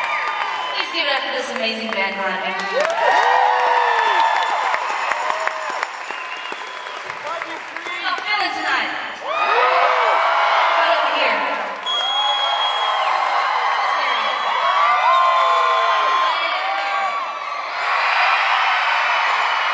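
A young woman sings into a microphone through loudspeakers in a large hall.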